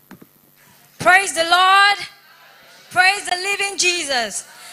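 A woman sings into a microphone over loudspeakers.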